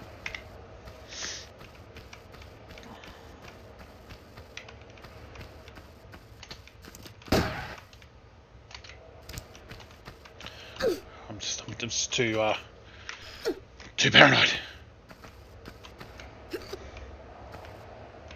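Footsteps patter on stone as a figure runs.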